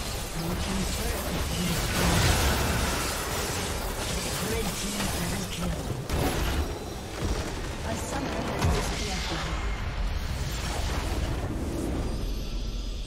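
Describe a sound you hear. Spell blasts and clashing hits from a game battle crackle and boom.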